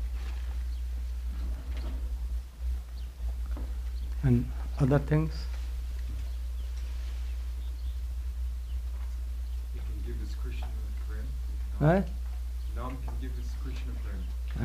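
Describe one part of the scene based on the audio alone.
An elderly man speaks calmly into a microphone, heard through a loudspeaker.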